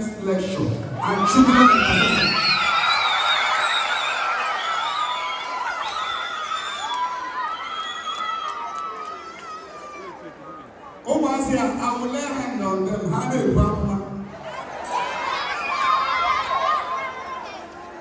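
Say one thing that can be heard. Children shout and cheer close by.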